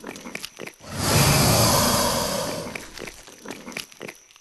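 A loud whooshing chime swells up and slowly fades.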